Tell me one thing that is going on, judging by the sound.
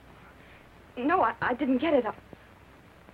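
A woman speaks tensely, close by.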